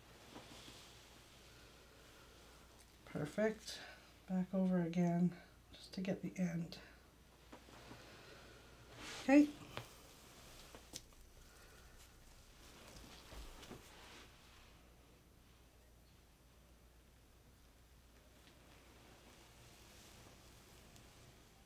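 Paper rubs softly across a wet painted canvas.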